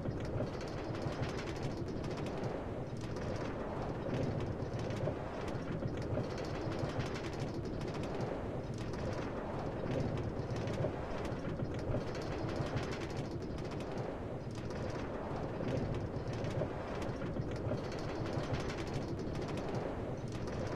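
A cart rolls steadily along rails with a rumbling clatter.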